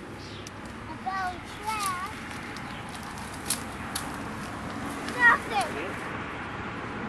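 A young girl calls out in short high bursts nearby.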